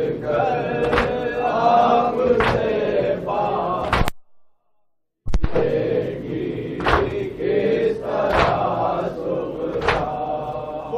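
Hands strike chests in slow, regular thumps.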